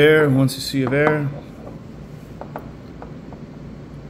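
A small glass vial is set down on a wooden table with a light clink.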